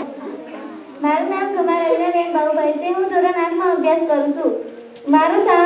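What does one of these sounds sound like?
A girl sings into a microphone.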